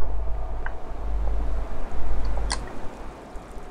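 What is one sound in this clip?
Water rushes down in a steady waterfall.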